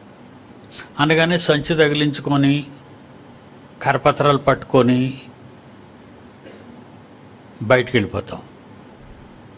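An elderly man speaks calmly into a close microphone, in short bursts with pauses.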